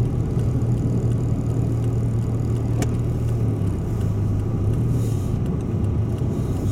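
Tyres crunch over icy snow on the road.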